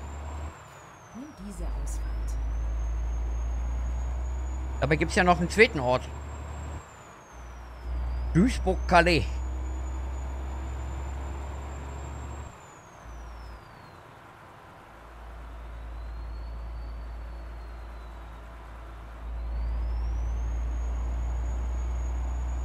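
A truck engine drones low and steady.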